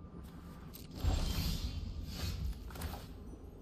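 A low whooshing chime sounds.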